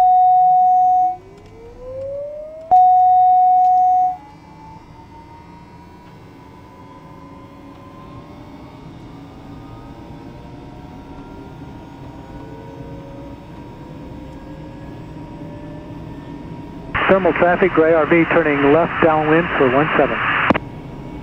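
An aircraft engine starts and its whine rises steadily.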